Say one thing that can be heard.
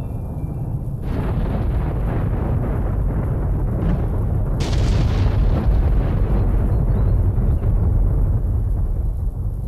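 Wind gusts through trees outdoors with a low rumble.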